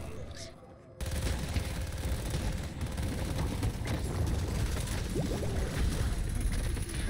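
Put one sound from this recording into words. Magic blasts burst and crackle loudly.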